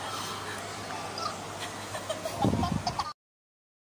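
An older woman laughs over a phone call.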